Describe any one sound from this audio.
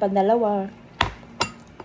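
A bowl clinks against a spoon.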